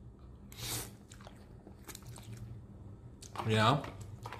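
A man chews and smacks his lips.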